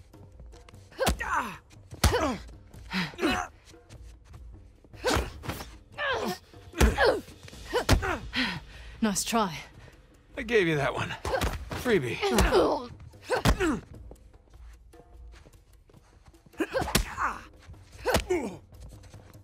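Punches and kicks thud in a fast fight.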